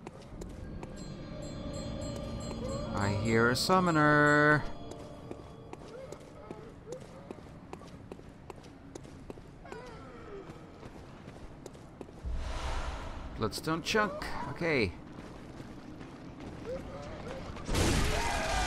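Footsteps run across stone.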